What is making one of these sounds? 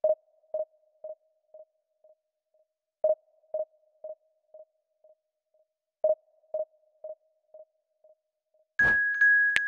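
A game menu gives soft, repeated electronic beeps.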